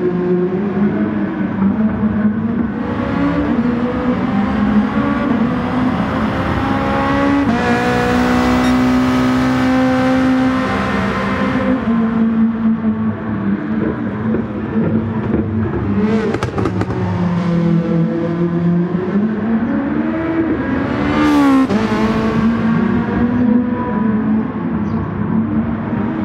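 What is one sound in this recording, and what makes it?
A race car engine roars loudly, its pitch rising and falling as it shifts gears.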